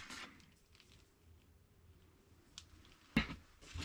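A power cord rustles and taps on a wooden surface.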